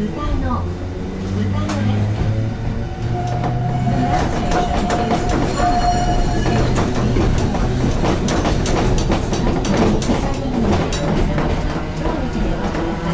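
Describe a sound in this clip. Train wheels clatter and rattle over the rails.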